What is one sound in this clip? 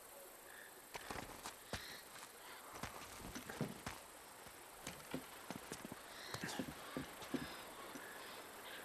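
Footsteps crunch on leaves and wooden planks.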